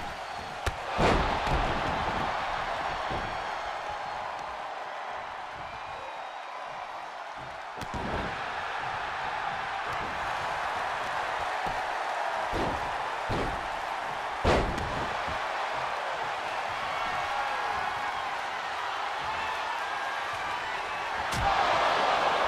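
Heavy bodies thud hard onto a wrestling mat.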